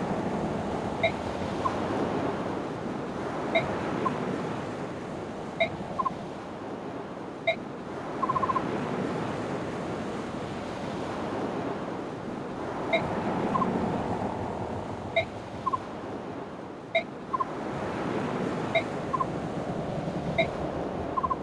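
Short electronic beeps sound again and again.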